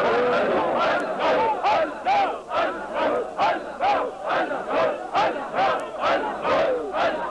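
A crowd of men chants slogans in a rhythmic call and response.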